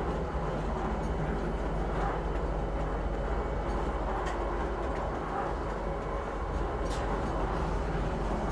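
A train rumbles steadily as it rolls past.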